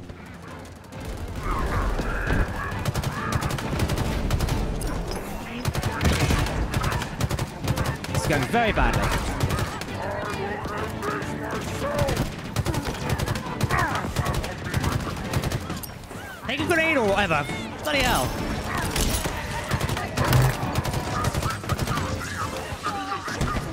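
Energy weapons zap and whine.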